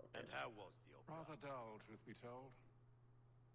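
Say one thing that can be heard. A man answers in a dry, calm voice.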